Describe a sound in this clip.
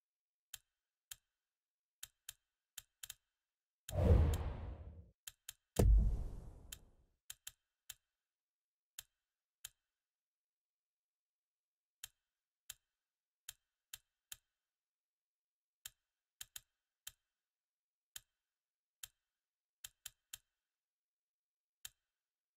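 Short, sharp menu clicks sound again and again.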